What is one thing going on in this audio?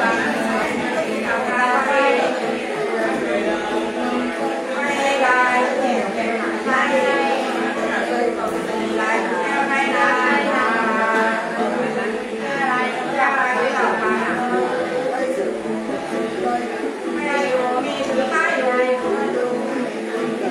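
A two-stringed fiddle plays a steady droning tune.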